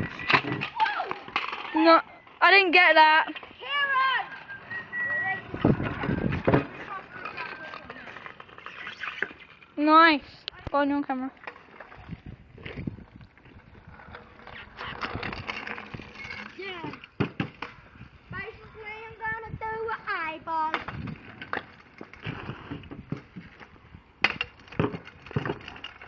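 Scooter wheels roll and rattle over rough asphalt.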